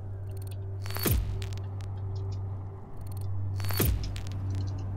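A game interface plays short whooshing sound effects.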